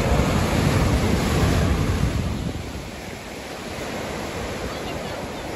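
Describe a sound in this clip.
Ocean waves crash and wash up onto the shore, loud at first and then softer.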